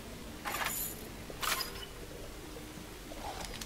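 A gun's metal parts clack and rattle during a reload.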